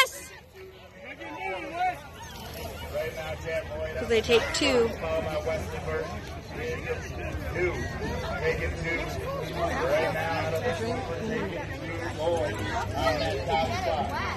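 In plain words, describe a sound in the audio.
Young children talk excitedly close by.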